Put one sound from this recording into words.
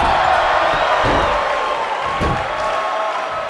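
Heavy thuds sound as a wrestler strikes an opponent on the ring mat.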